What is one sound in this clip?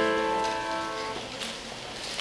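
A piano's final chord rings out and fades away.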